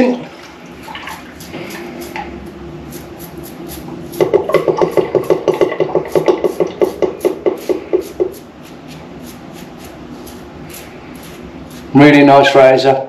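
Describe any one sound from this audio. A razor scrapes over stubble in short, rasping strokes.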